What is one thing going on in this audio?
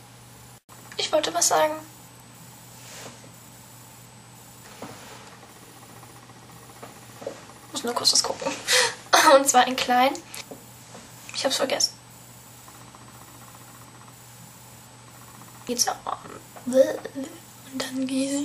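A young woman talks close to the microphone in short bursts.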